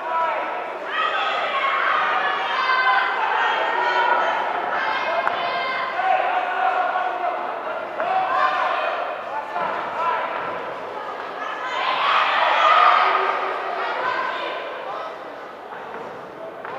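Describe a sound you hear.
Spectators shout encouragement loudly in an echoing hall.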